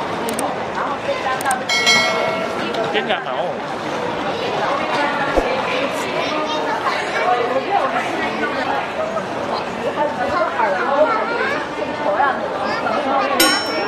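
A crowd murmurs in an echoing hall.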